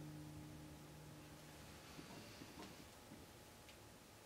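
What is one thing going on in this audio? An acoustic bass guitar plays low plucked notes.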